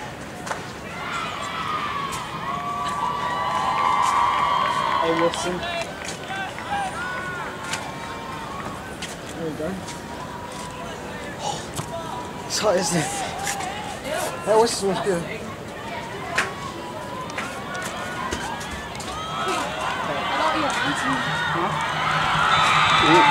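Young men shout and call to each other outdoors, some way off.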